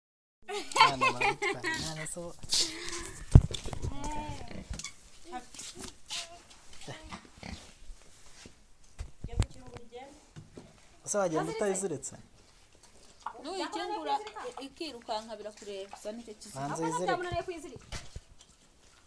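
A pig grunts and snuffles close by.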